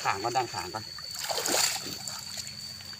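Boots splash through shallow water.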